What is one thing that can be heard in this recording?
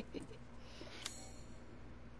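A short electronic click sounds.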